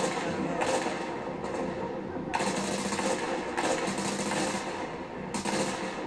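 Rifle shots crack in bursts, ringing out loudly.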